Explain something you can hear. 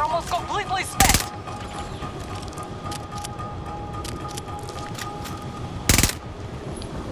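A submachine gun fires short bursts.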